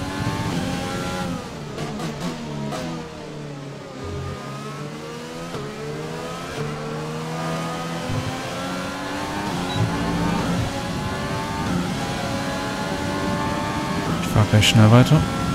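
A racing car engine whines loudly, dropping in pitch while braking and rising again as it speeds up.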